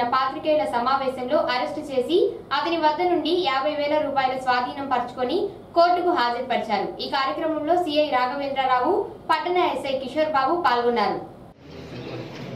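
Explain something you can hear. A young woman reads out the news clearly.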